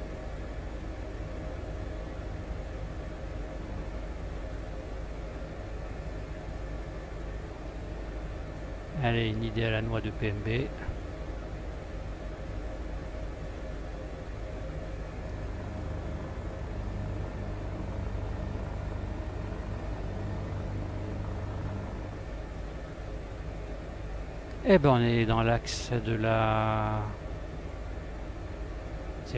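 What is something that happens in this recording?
A helicopter's rotor and engine drone steadily.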